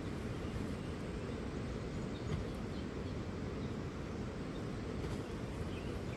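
Cement powder pours from a bag.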